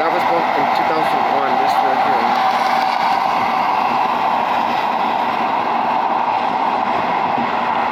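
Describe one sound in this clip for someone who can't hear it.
A car drives along a road, its tyres and engine humming steadily from inside.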